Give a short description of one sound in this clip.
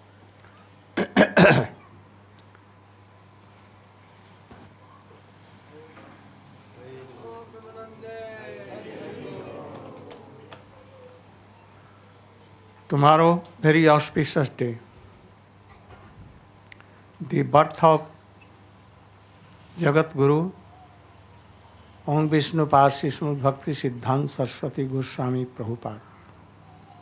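An elderly man speaks slowly and calmly through a microphone, in short phrases with pauses.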